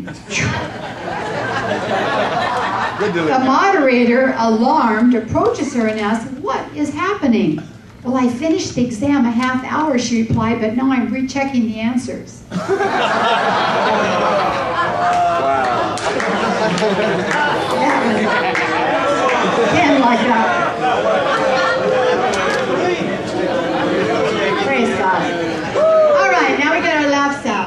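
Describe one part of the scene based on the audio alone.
A woman speaks with animation into a microphone, heard through loudspeakers.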